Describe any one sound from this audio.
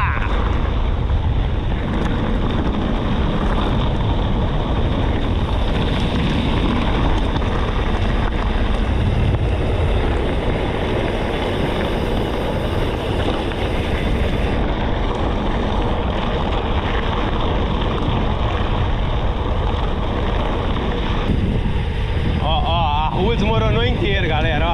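Bicycle tyres rumble and crunch over a dirt track.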